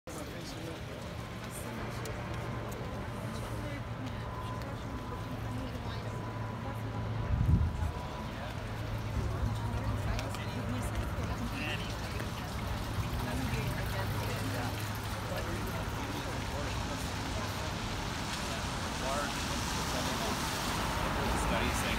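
Rain patters steadily on umbrellas outdoors.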